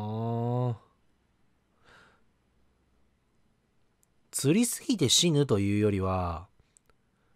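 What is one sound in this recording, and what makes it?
A young woman speaks with animation into a microphone.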